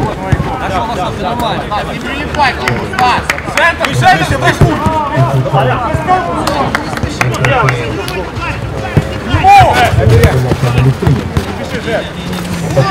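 Men shout and call out to each other nearby.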